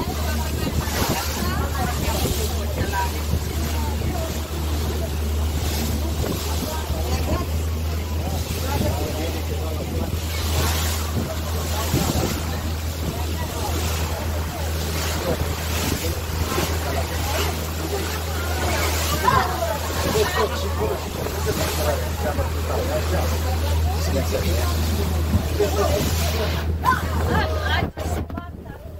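A boat's engine drones steadily and low.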